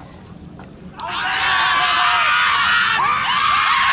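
Men shout loudly together outdoors.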